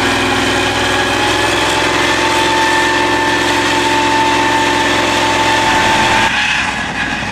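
Metal tracks clank and squeal as a vehicle crawls over soft ground.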